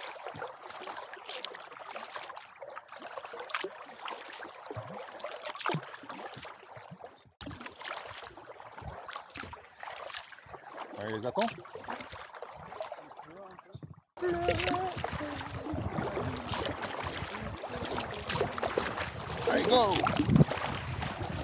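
Water laps and splashes against the hull of a kayak.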